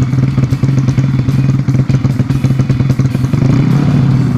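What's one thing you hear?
A single-cylinder four-stroke moped engine idles through an open exhaust.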